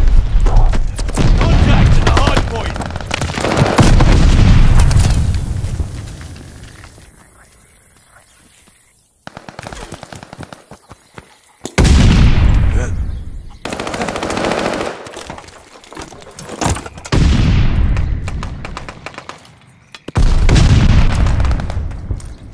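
Gunfire rattles in rapid, loud bursts.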